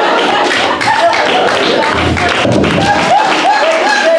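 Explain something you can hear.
Bodies thump onto a wooden floor during a scuffle.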